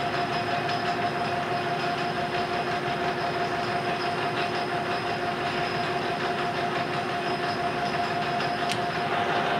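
A metal lathe hums and whirs steadily.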